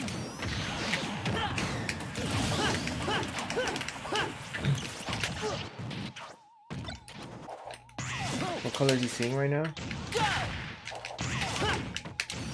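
Video game fight effects whoosh and smack.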